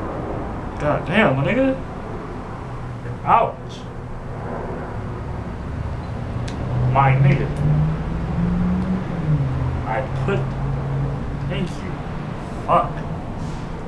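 A young man speaks close by in short, casual bursts.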